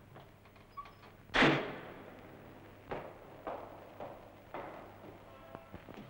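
Footsteps climb a stairway.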